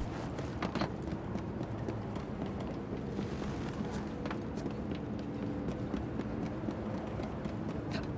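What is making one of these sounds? Footsteps patter quickly on a roof.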